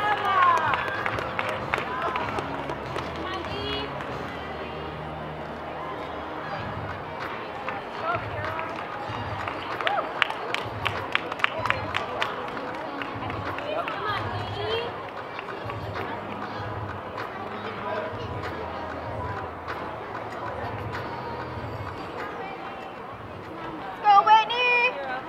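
Many girls and women chatter and call out in a large echoing hall.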